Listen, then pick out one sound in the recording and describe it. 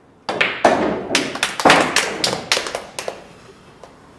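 Pool balls clack against each other and against the cushions in quick bursts.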